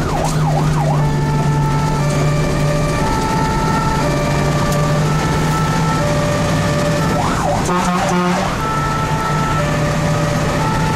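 A two-tone siren sounds in a steady alternating pattern.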